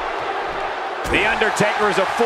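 A body slams onto a wrestling ring mat.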